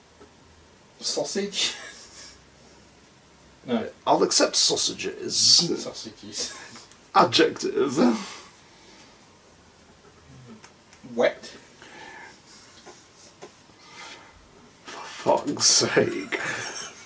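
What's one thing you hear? A young man laughs close by, in bursts.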